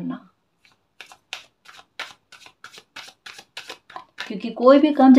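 Cards flick and patter as a deck is shuffled by hand.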